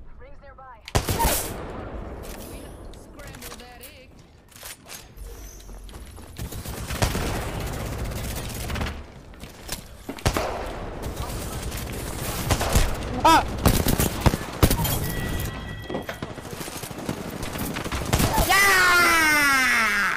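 Rapid gunfire cracks in bursts.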